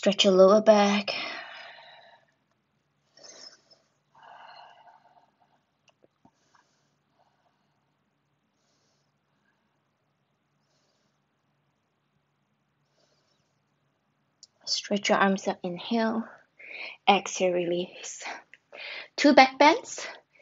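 A young woman speaks calmly and clearly, close by, as if instructing.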